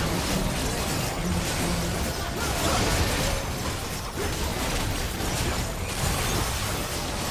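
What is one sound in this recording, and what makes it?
Video game spell effects crackle and boom during a battle.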